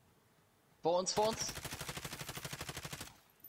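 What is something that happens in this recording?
A machine gun fires a long, rapid burst.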